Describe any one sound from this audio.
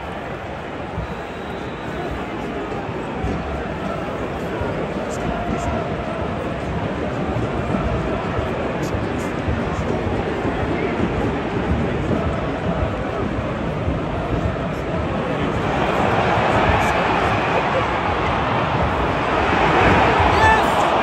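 A large stadium crowd murmurs and cheers, swelling louder toward the end.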